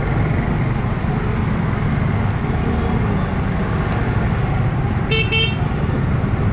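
A motorbike engine rumbles nearby.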